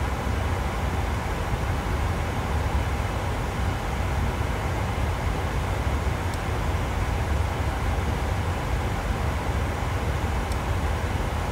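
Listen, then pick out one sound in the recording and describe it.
Jet engines roar with a steady, deep rumble.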